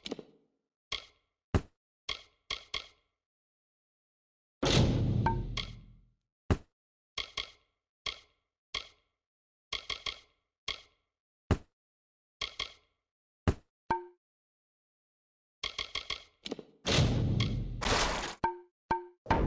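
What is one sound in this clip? Game menu clicks tick sharply as items are browsed.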